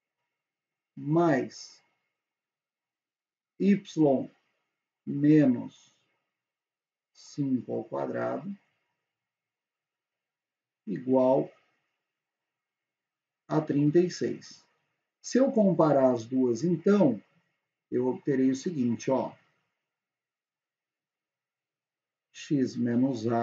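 A young man speaks calmly and clearly into a close microphone, in short phrases with pauses.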